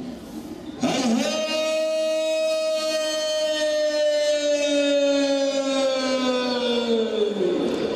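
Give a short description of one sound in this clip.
A marching band's horns blare a long held note that slowly sinks in pitch.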